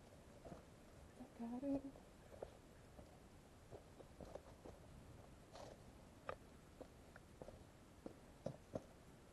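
Footsteps crunch on dry leaves and soil.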